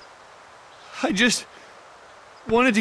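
An older man speaks weakly.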